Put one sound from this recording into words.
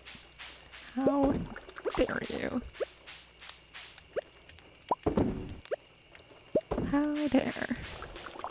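Short bubbly game pops sound as items are picked up.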